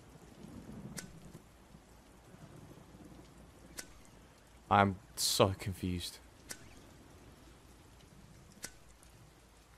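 A lighter's flint wheel clicks as it is flicked several times.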